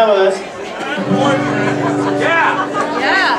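An upright bass plays plucked notes.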